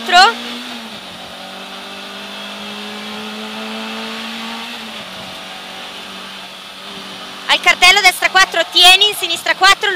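A car engine hums steadily at high revs inside a car.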